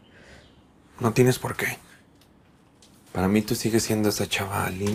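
A young man speaks firmly.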